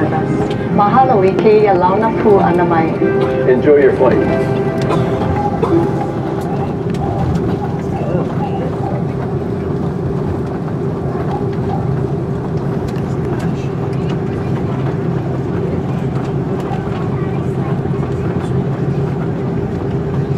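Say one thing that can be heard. A jet engine hums steadily inside the cabin as the plane taxis.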